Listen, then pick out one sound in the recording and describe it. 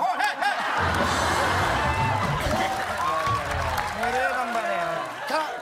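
A woman laughs loudly through a microphone.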